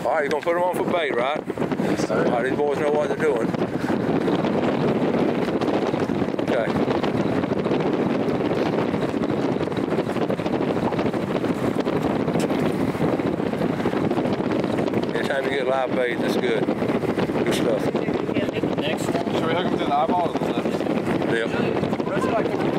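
Steady wind blows outdoors.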